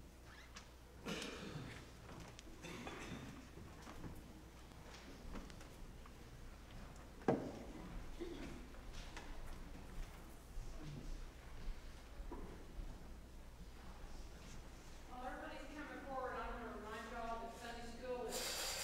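A low murmur of people talking fills a large echoing room.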